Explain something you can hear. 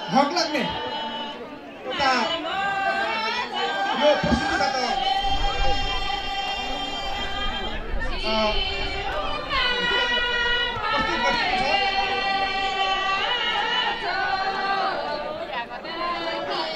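A group of women sing together in unison outdoors.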